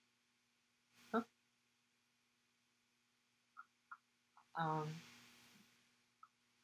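A second young woman speaks calmly over an online call.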